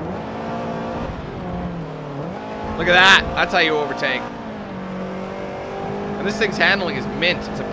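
A car engine hums steadily and shifts pitch as gears change.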